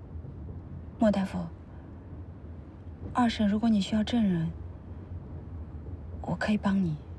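A young woman speaks in short, tense bursts close by.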